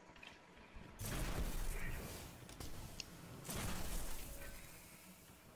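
A heavy gun fires in loud, rumbling blasts.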